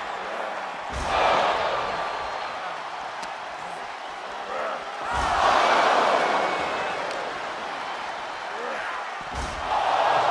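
Heavy bodies slam hard against a table and floor.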